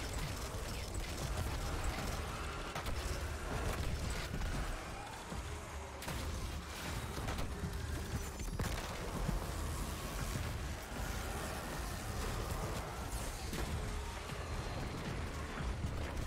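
Gunfire and energy blasts crack and boom in a video game.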